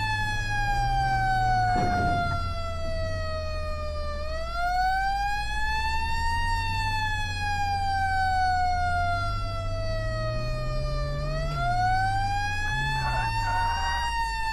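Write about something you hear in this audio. An engine hums steadily as a vehicle drives.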